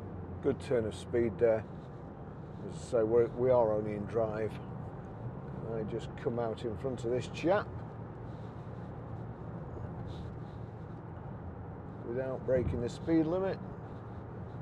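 A middle-aged man talks calmly and closely into a microphone.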